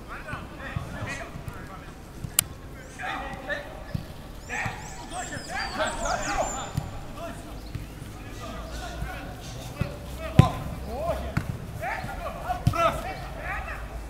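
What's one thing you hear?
Young men call out and shout to each other outdoors.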